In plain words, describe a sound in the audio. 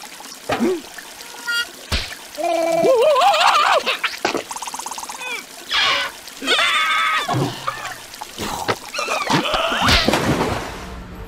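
A cartoon creature babbles and squeals in a high, squeaky voice.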